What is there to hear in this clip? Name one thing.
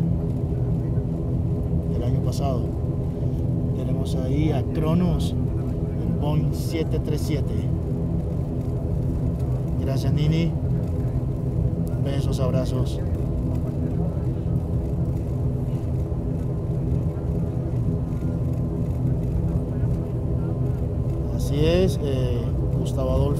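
A jet airliner's engines hum steadily as it taxis.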